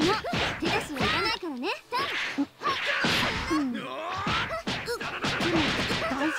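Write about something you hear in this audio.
Punches land with sharp, heavy thuds.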